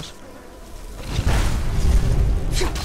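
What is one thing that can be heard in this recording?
Flames roar and crackle from a fire spell.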